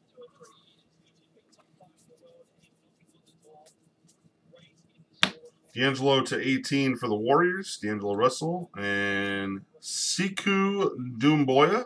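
Trading cards slide and flick against each other as they are sorted.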